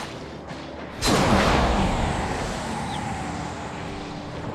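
A heavy magical blast booms and rumbles away.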